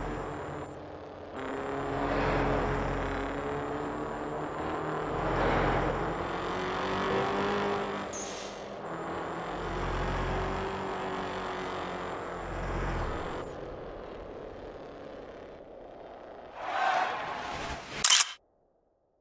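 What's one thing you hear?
A car engine roars at high speed, rising and falling as the gears change.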